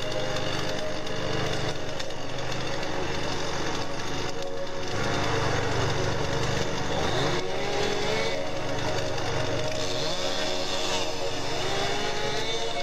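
A chainsaw engine runs loudly close by, revving up and down.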